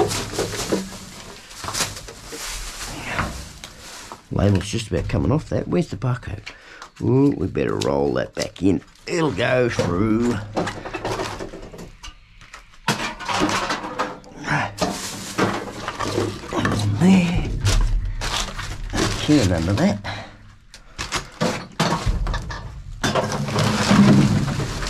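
Plastic bottles and containers knock and clatter.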